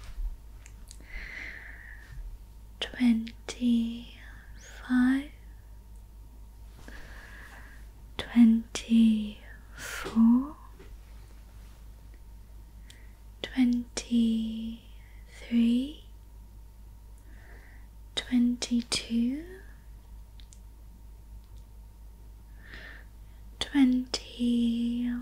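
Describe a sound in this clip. A young woman whispers softly and closely into a microphone.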